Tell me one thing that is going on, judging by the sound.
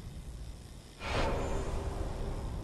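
A fiery whoosh flares up suddenly.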